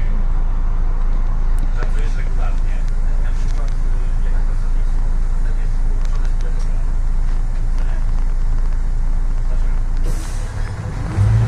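A bus engine idles with a low steady hum.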